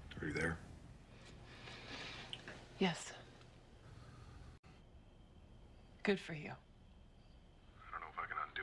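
A young woman speaks quietly into a telephone.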